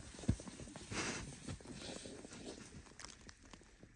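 A person slides and stumbles on packed snow with a loud scrape.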